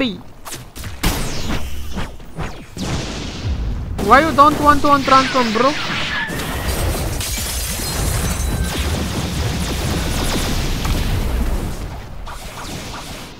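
Loud energy blasts whoosh and roar in a game fight.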